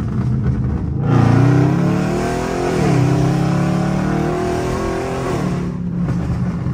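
A car engine roars loudly as the car accelerates hard.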